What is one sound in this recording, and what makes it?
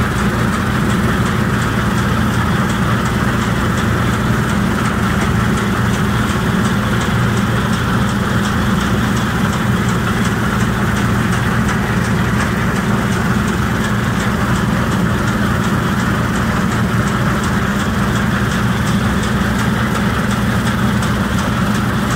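A harvester reel rattles and clatters rapidly as it turns through the crop.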